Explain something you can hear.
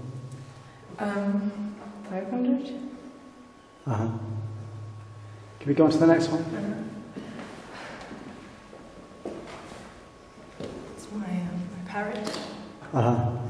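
A woman speaks close by, in a calm voice.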